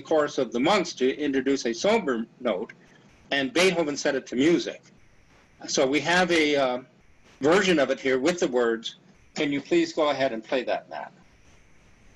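An elderly man talks calmly into a computer microphone, heard as if over an online call.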